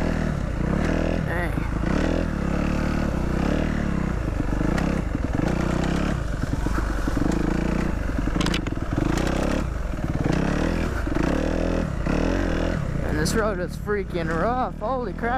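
A dirt bike engine roars close by, revving up and down as it rides over rough ground.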